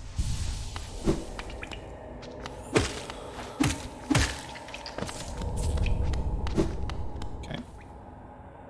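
Sharp slashing and hitting sound effects strike several times.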